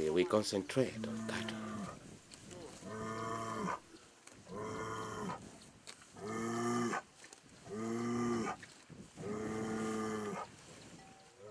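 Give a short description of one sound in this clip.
A cow moos loudly several times.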